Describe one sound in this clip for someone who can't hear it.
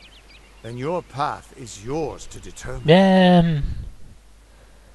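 A man speaks calmly in a deep voice.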